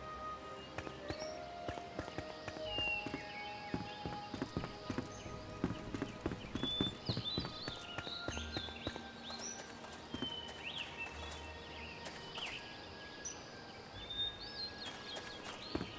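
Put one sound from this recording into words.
Footsteps patter quickly across hard ground and wooden floors.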